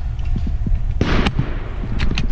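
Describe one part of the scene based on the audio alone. An airsoft rifle fires a single sharp shot.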